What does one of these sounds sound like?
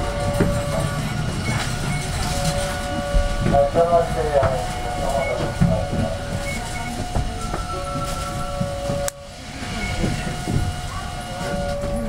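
Bus engines idle with a steady low rumble.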